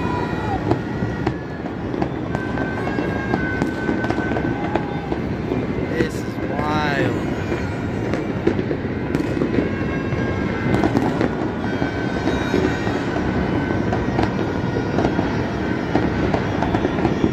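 Fireworks crackle and pop continuously across a distant city.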